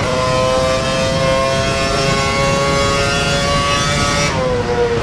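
A racing car engine whines steadily at high revs, briefly dropping in pitch near the end.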